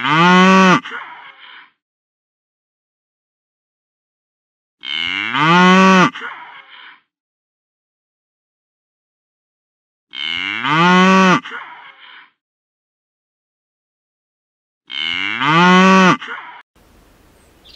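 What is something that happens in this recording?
A cow moos loudly, several times.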